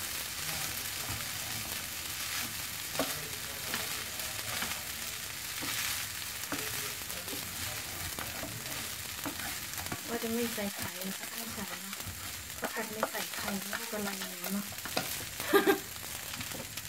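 A wooden spatula scrapes and taps against a frying pan.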